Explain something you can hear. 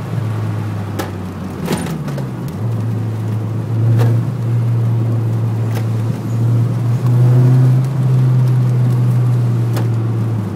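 The car rattles and bumps over a rough road.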